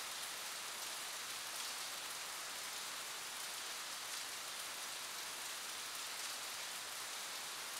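Rain falls steadily and hisses.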